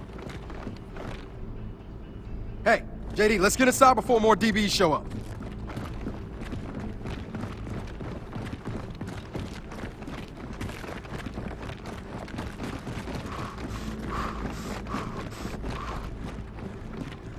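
Boots run quickly on stone paving.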